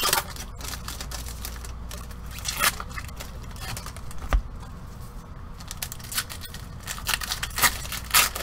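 Gloved hands rustle and crinkle plastic wrapping.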